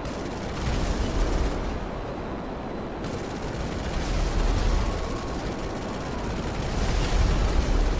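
A jet engine roars steadily as a fighter plane flies low.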